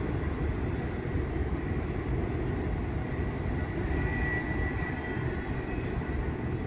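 A train rumbles faintly in the distance as it approaches.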